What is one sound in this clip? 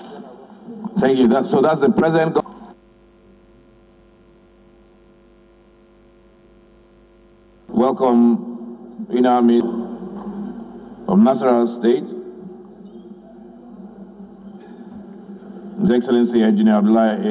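A man speaks through a microphone in short bursts.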